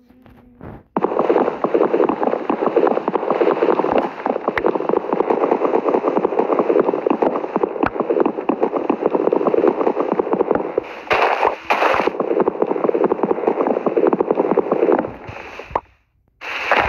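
Leaves rustle and crunch as they are broken again and again.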